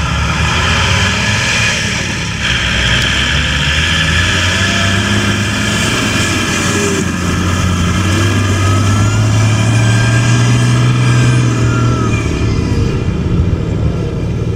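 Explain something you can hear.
A heavy truck engine rumbles and revs as the truck drives past.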